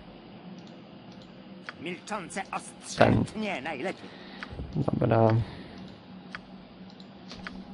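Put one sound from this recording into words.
Menu buttons click.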